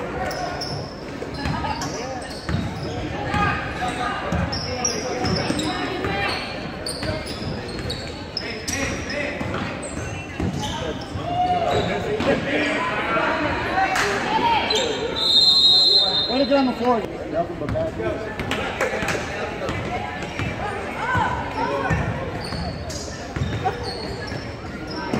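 A crowd of spectators chatters and calls out in a large echoing gym.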